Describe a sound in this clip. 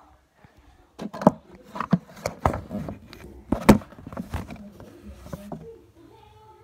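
Knocks and bumps sound as a small device is handled close up.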